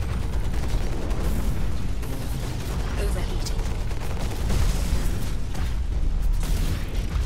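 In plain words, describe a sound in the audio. Heavy guns fire in rapid bursts.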